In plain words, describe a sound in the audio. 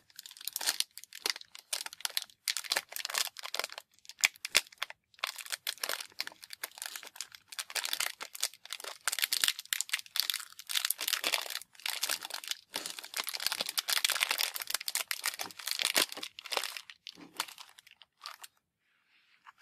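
Plastic wrap crinkles and rustles close up.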